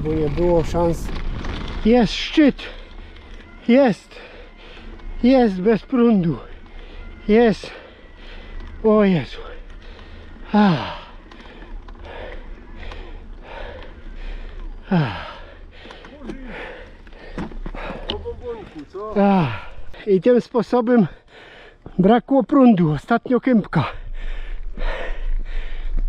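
Bicycle tyres crunch and roll over gravel and asphalt.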